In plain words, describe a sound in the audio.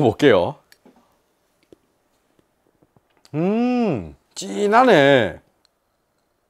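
A man hums and makes pleased vocal sounds close by.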